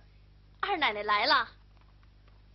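A young woman calls out in a high, sing-song voice nearby.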